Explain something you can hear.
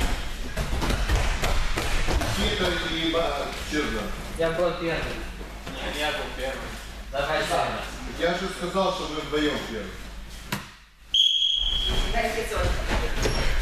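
Bare feet thud on soft mats.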